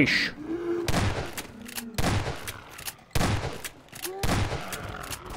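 A shotgun fires several sharp blasts.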